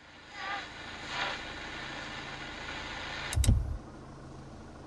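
A car radio crackles with static.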